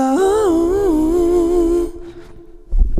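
A man sings a long held note with vibrato close into a microphone.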